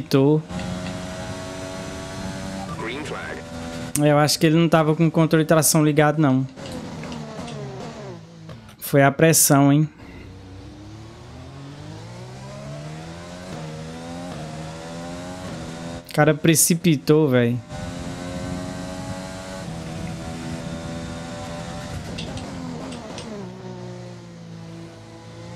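A racing car engine revs high and shifts through the gears.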